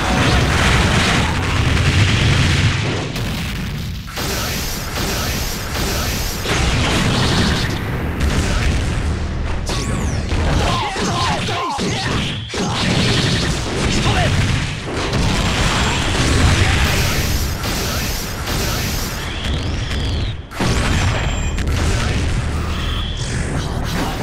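Punches and blasts hit hard in quick bursts.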